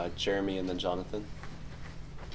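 A man speaks briefly into a microphone in a slightly echoing room.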